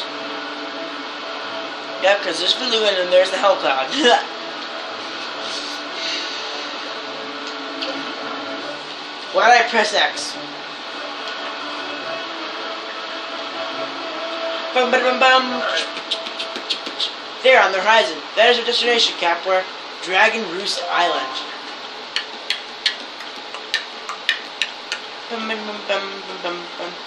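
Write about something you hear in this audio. Video game music plays through a television speaker.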